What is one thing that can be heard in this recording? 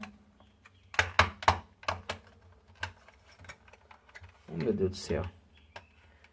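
A plastic pry tool clicks and snaps against a plastic casing.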